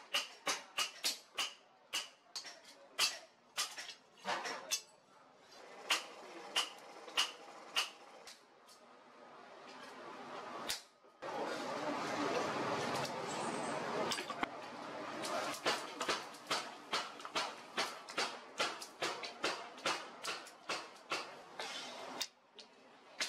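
A hammer rings in quick, sharp blows on metal on an anvil.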